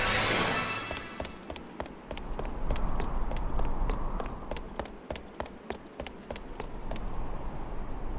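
Quick footsteps patter on hard pavement.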